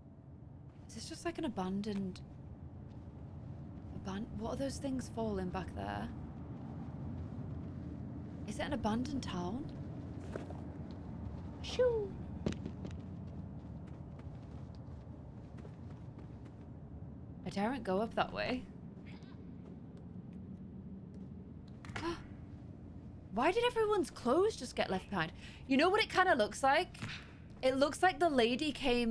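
A young woman talks with animation into a close microphone, in bursts.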